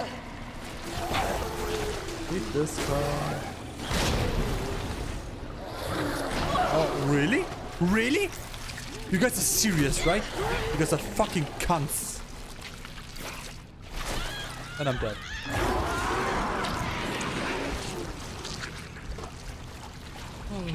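A monster roars and snarls loudly.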